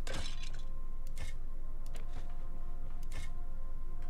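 A heavy stone lid scrapes open.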